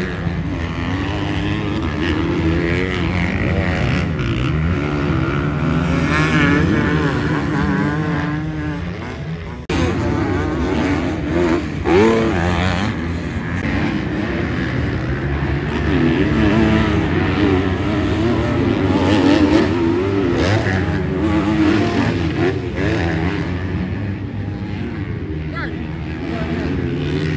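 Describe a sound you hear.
Dirt bike engines rev and whine close by and in the distance.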